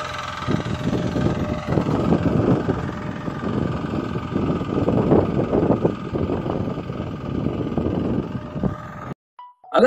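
A small tiller engine runs with a steady rattling drone.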